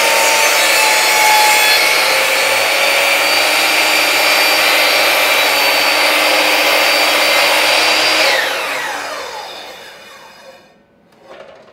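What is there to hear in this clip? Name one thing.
A power saw whines loudly as it cuts through wood, then slowly winds down.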